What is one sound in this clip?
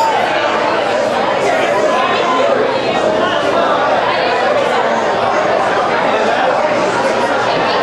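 A rock band plays loudly with distorted electric guitars.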